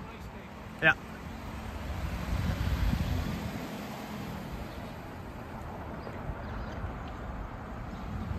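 A car drives slowly past close by.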